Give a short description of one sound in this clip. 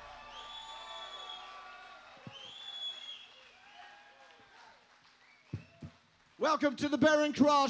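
A rock band plays live with electric guitars and drums.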